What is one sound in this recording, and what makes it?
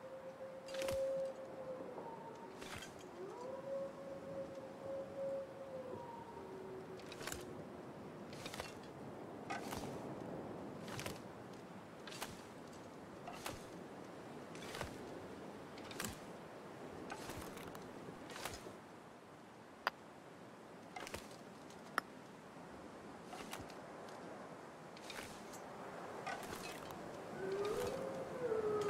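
Wind howls and gusts.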